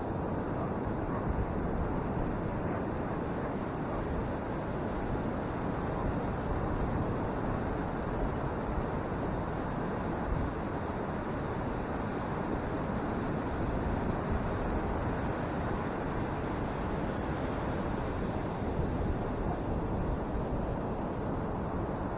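Waves crash and roll onto the shore in a steady roar.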